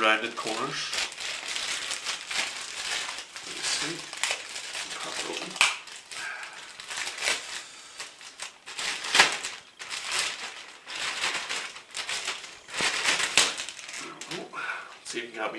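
Plastic packaging crinkles and rustles as it is torn open.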